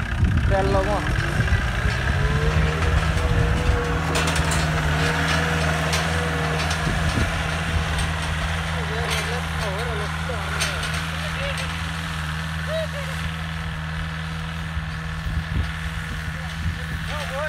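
A tractor engine idles with a steady low rumble.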